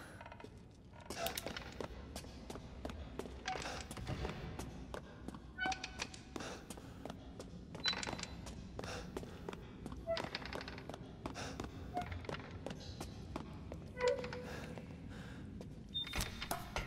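Footsteps echo on stone in a narrow tunnel.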